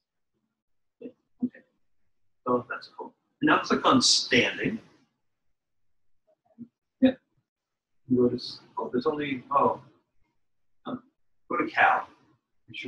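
A man speaks calmly through an online call, in short bursts.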